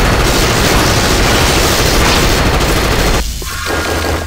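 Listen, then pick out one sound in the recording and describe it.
Blasts crackle and explode.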